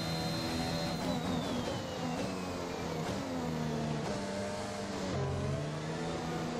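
A Formula One car engine slows with downshifts.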